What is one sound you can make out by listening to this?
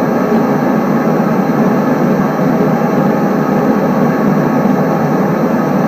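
A train rumbles steadily along the tracks, heard through a loudspeaker.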